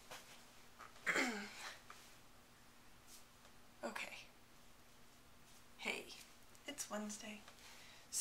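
A young woman speaks casually and close by, in short bursts.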